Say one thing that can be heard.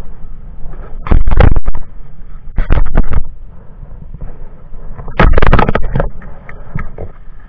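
Wind gusts roar against the microphone outdoors.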